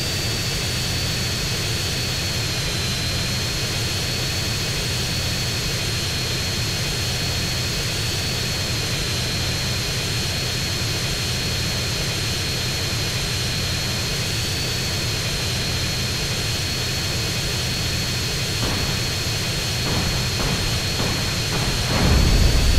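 Jet engines roar steadily as a large plane flies low overhead.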